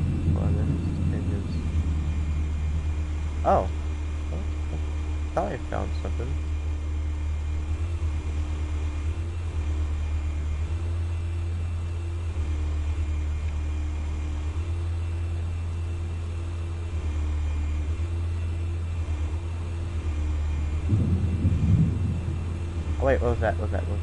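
A small drone hums steadily.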